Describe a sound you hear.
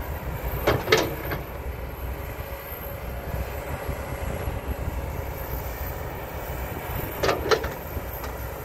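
An excavator bucket clanks and scrapes against dirt and rubble.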